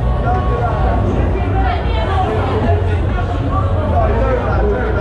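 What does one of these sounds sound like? Young men talk and shout nearby.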